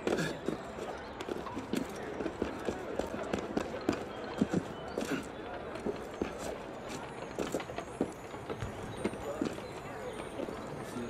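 Quick footsteps patter across a tiled roof.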